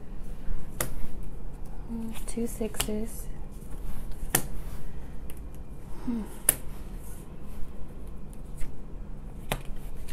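Playing cards shuffle and rustle.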